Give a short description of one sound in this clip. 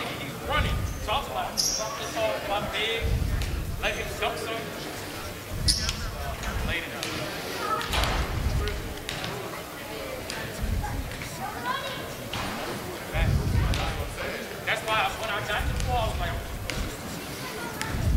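Basketballs bounce on a hardwood floor in a large echoing gym.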